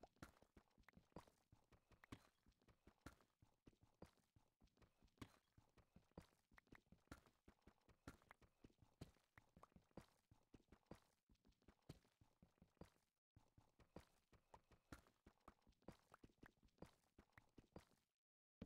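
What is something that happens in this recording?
A pickaxe chips rapidly at stone blocks, each block breaking with a crunch.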